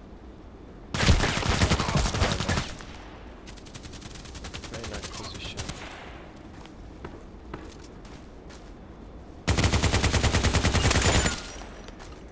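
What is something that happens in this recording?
A rifle fires rapid bursts of loud automatic shots.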